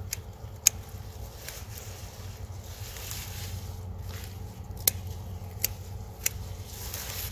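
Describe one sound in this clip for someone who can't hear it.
Plant stems snap sharply.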